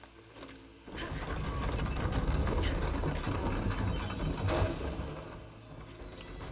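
A heavy object scrapes and grinds as it is pushed along the ground.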